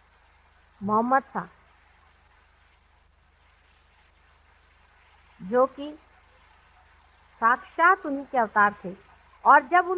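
A woman speaks calmly in short phrases with pauses.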